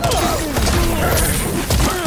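Ice magic whooshes and shatters.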